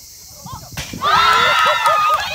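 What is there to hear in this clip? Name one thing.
Young women cheer and shout excitedly.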